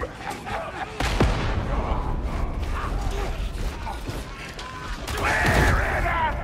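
A heavy explosion booms and rumbles low.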